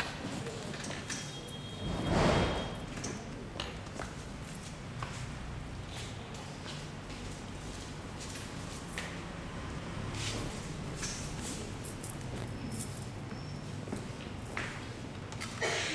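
Voices chatter quietly in the background of a busy room.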